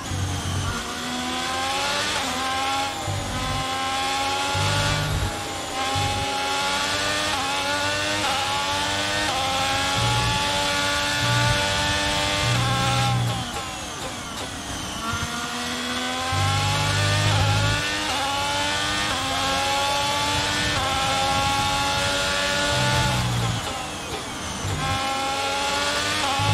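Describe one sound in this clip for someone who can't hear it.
A racing car engine screams, rising in pitch through each gear and dropping as it shifts down.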